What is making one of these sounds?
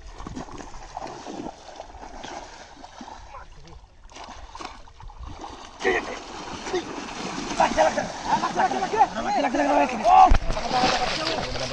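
Water splashes as men wade and thrash through it.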